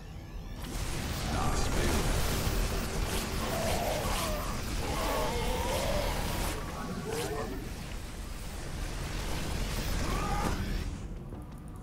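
Rapid gunfire rattles in a loud battle.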